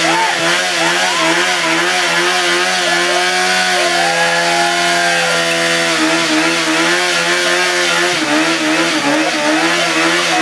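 A motorcycle engine revs loudly and roars steadily close by.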